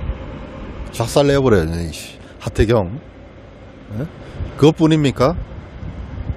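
A man speaks into a clip-on microphone close up, in short calm phrases.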